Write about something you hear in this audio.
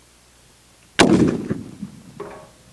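A rifle fires a single loud shot outdoors, echoing away.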